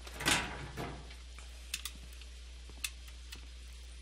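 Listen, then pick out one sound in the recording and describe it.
A drawer slides open with a scrape.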